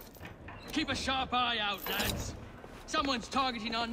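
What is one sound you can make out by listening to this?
A heavy metal door rattles and clanks.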